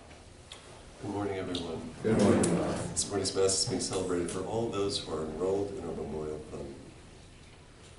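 An elderly man speaks calmly and clearly.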